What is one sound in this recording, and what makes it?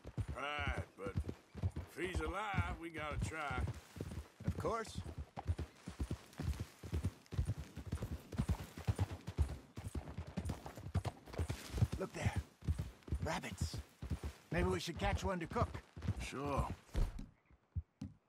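Horse hooves thud steadily on rocky ground.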